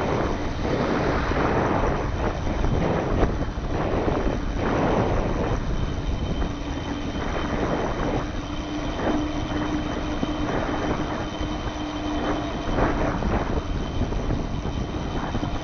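Bicycle tyres hum on asphalt.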